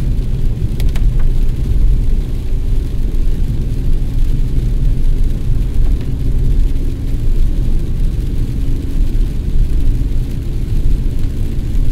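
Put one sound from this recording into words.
A car engine rumbles low and steady while driving.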